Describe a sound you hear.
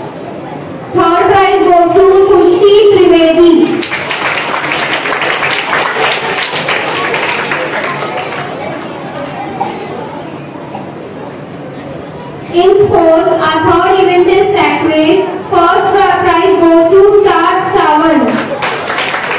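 A woman speaks loudly.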